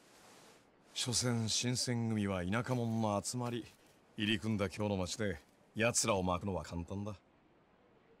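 A man speaks calmly and casually.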